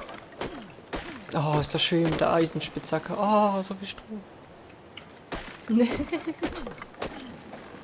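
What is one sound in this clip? A pickaxe strikes wood with sharp knocks.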